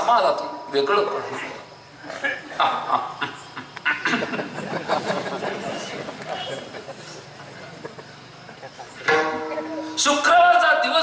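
A man speaks with animation into a microphone over loudspeakers in an echoing hall.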